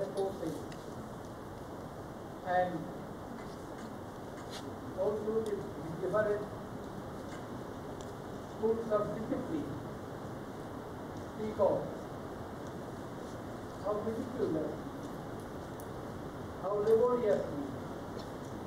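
An elderly man speaks slowly and calmly into a microphone, with long pauses, in a large echoing hall.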